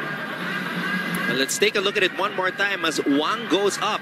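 A volleyball is spiked hard with a sharp slap.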